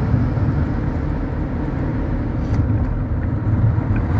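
Another car passes by in the opposite direction.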